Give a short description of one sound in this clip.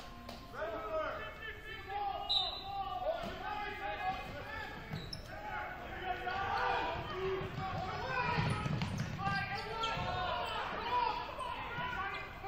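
Spectators talk and call out in a large echoing hall.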